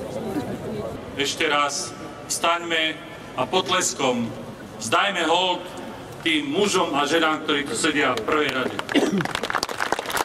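A man speaks with emphasis through loudspeakers outdoors, echoing.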